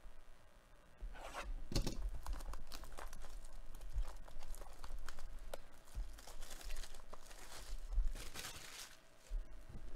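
Plastic wrapping crinkles and rustles as a box is handled.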